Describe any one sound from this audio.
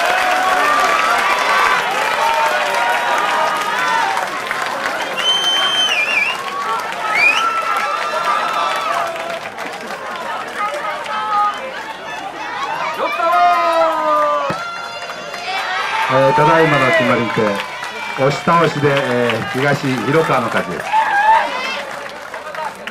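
A crowd chatters and calls out all around in the open air.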